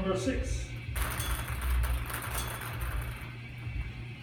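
Balls rattle and tumble inside a spinning wire cage.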